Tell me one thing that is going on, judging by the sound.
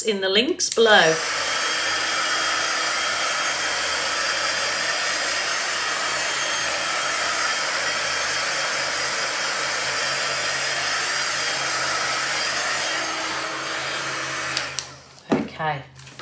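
A heat gun blows hot air with a steady, loud whoosh.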